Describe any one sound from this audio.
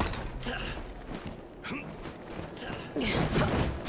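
Footsteps thud over rooftop tiles.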